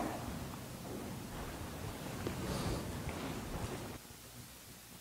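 A middle-aged man speaks calmly in an echoing hall.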